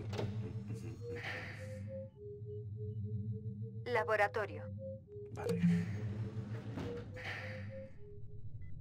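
Keypad buttons beep in short electronic tones.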